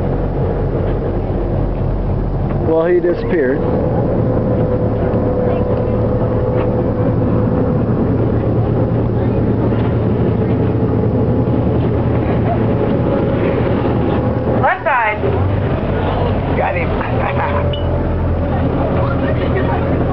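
Wind blows outdoors over open water.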